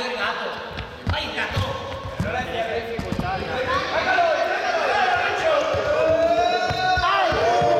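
Sneakers squeak and thud on a hard floor.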